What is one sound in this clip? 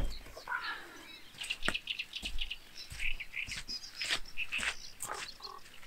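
Boots squelch on wet mud.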